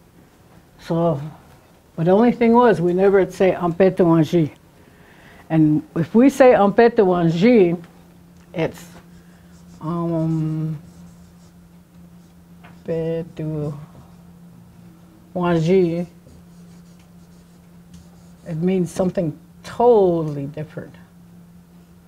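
An elderly woman speaks slowly and clearly, as if teaching.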